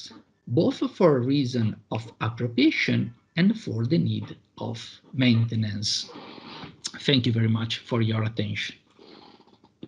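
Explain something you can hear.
A man speaks steadily over an online call.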